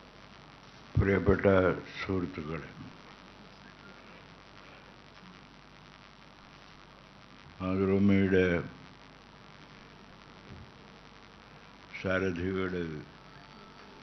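An elderly man speaks slowly into a microphone, in short bursts with long pauses.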